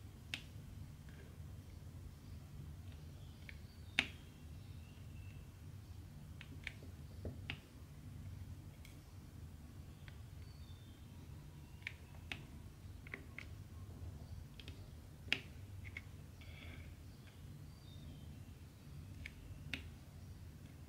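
Tiny plastic beads click softly as they are picked up and pressed onto a sticky canvas.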